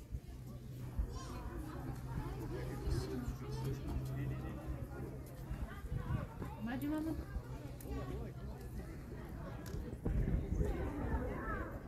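Men and women talk quietly nearby outdoors.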